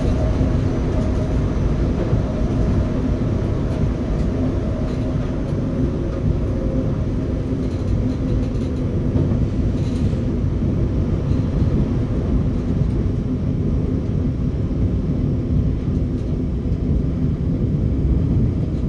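A train rumbles steadily along the rails.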